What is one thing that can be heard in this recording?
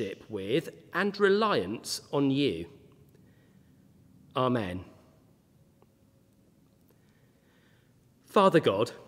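A man sings slowly through a microphone, with pauses between phrases.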